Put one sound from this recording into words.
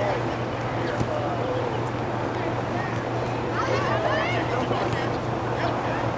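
Young players shout to one another across an open field outdoors.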